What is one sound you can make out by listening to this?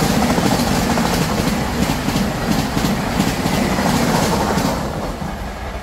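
A fast train roars past close by, its wheels clattering rhythmically over the rail joints.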